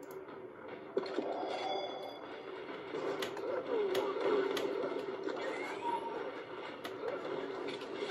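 Video game gunshots and pickup sounds crack through a small speaker.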